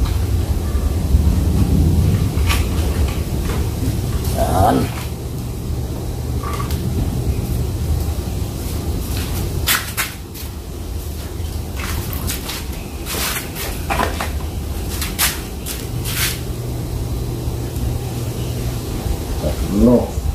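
Plastic bottles knock and scrape against a wire mesh.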